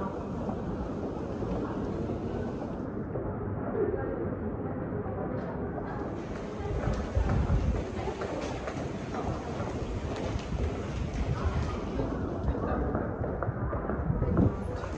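Footsteps of many people shuffle on a tiled floor in an echoing underground passage.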